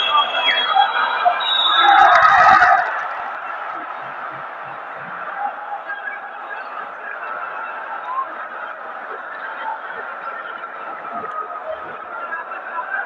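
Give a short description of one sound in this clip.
A large crowd cheers and roars in a large echoing arena.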